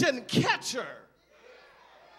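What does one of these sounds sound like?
A man shouts fervently through a microphone in an echoing hall.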